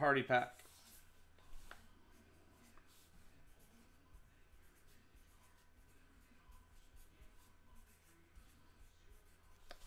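A marker pen scratches on paper.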